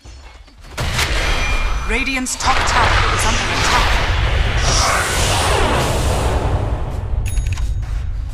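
Game spells and attacks clash and crackle in a fight.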